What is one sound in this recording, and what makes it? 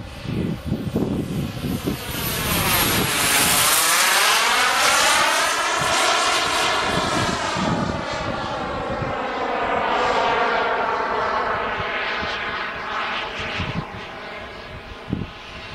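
A jet plane roars loudly overhead and slowly fades away.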